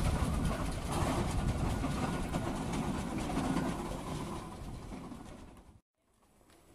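A horse's hooves clop on gravel.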